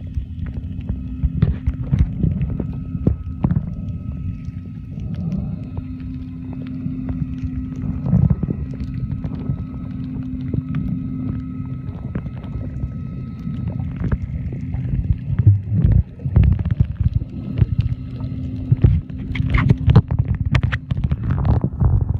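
Water rumbles and swishes, heard muffled from underwater.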